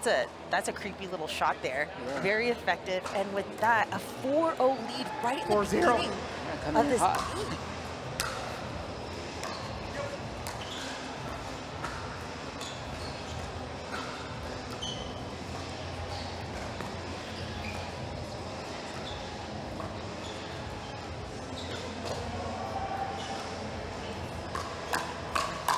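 Paddles hit a plastic ball back and forth with sharp hollow pops.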